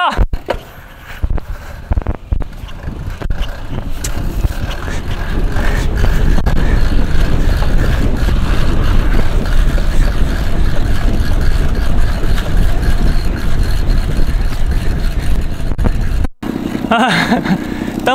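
Wind rumbles and buffets a microphone as a bicycle speeds along outdoors.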